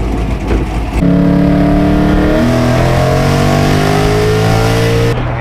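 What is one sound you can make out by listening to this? A car engine roars and climbs in pitch through gear changes, heard from inside the car.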